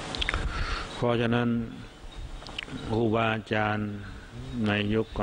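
A man chants slowly and steadily through a microphone.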